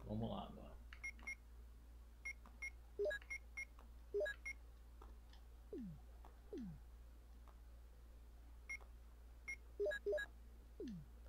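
Short electronic beeps sound as a game menu is browsed.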